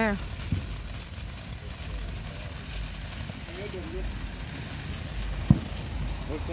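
Firework pops and bangs go off sharply.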